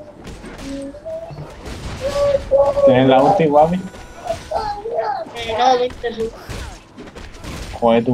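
Game spells and blows clash in a battle.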